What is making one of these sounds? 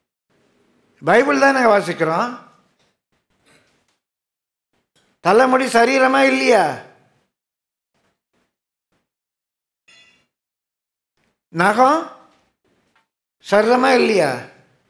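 An elderly man speaks slowly and expressively through a microphone, with long pauses between phrases.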